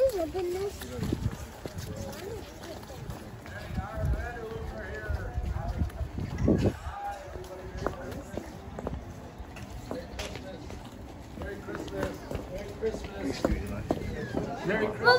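Young children shout and chatter excitedly nearby.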